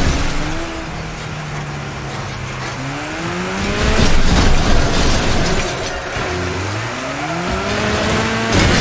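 A car engine revs up and down as it races.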